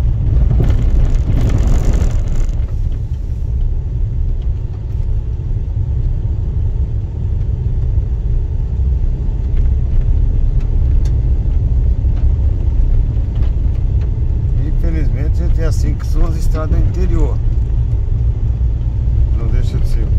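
Tyres crunch and rattle over a dirt road.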